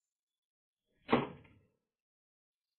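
A door slams shut with a thud.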